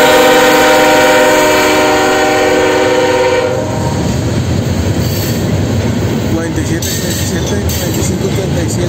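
A freight train rumbles and clatters past on the rails.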